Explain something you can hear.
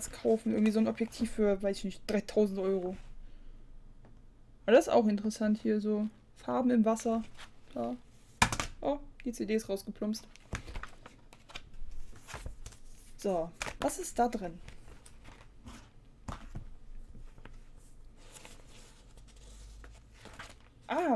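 Magazine pages rustle and flip.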